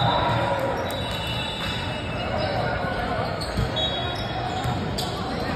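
Voices of players and onlookers chatter in a large echoing hall.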